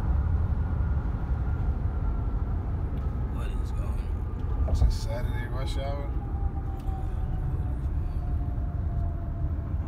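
A car's tyres rumble steadily on a highway from inside the car.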